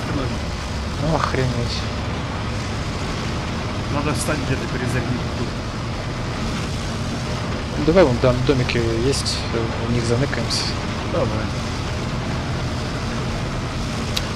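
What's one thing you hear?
A heavy vehicle engine rumbles steadily as it drives.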